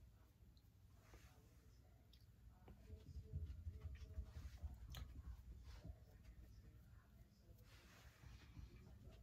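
A middle-aged woman talks calmly and softly close to a microphone.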